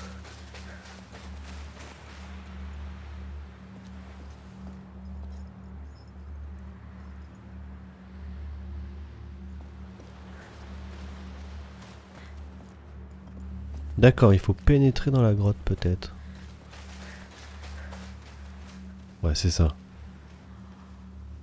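Footsteps crunch softly on sand and gravel.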